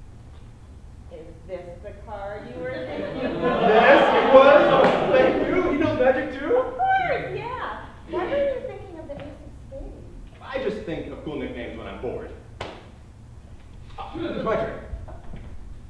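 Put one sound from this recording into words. A young woman speaks and laughs.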